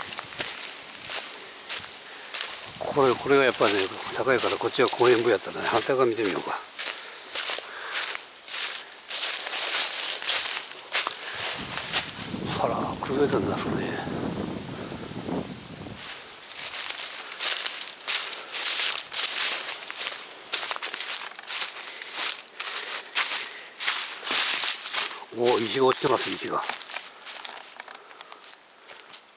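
Footsteps crunch through dry leaves outdoors.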